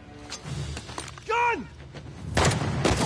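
A man speaks urgently.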